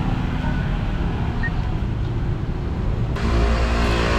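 A car engine rumbles as the car pulls away.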